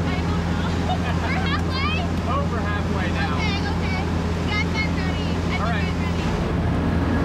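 A young woman laughs and talks excitedly close by.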